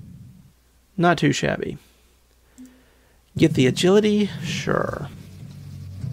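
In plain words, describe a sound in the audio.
Bright menu chimes ring out in a video game.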